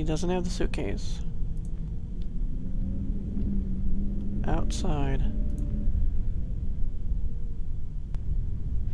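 A plane's engines drone low and steadily.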